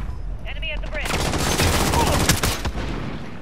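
Rapid gunshots ring out.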